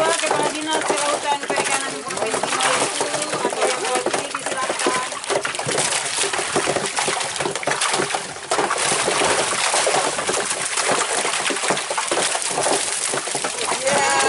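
A crowd of men and women chatter close by outdoors.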